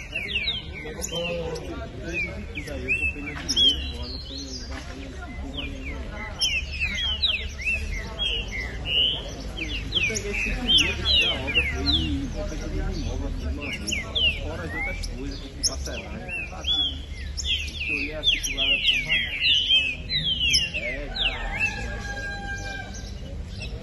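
Caged songbirds sing loud, rapid chirping phrases close by.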